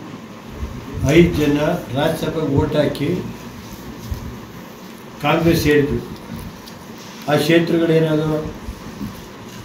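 An elderly man speaks calmly and deliberately, close by, in short bursts with pauses.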